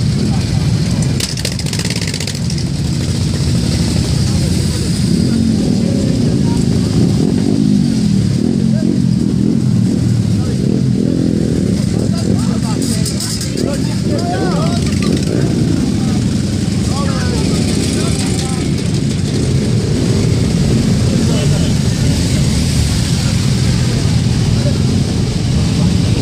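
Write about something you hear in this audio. Motorcycle engines rev up as bikes ride past.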